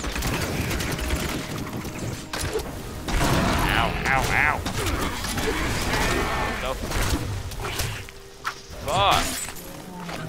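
Spells burst and crackle amid fighting.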